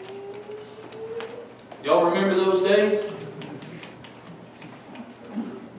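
A middle-aged man speaks into a microphone in an echoing room, preaching with emphasis.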